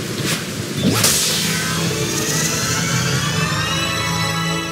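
A shimmering game chime swells and rings out.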